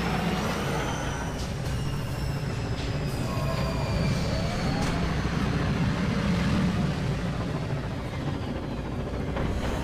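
A vehicle engine hums low as it glides past.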